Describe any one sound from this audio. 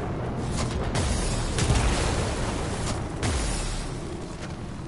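Loud energy blasts whoosh and boom in bursts.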